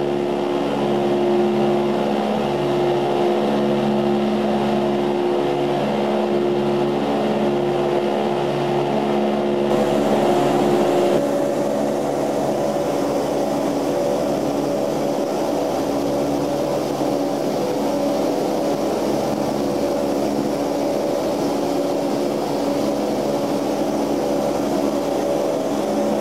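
Propeller engines drone loudly and steadily, heard from inside an aircraft in flight.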